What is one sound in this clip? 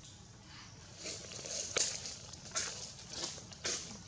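Leaves and branches rustle as a monkey shifts in a tree.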